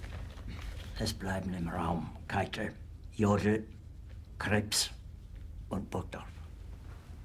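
An older man speaks quietly and tensely close by.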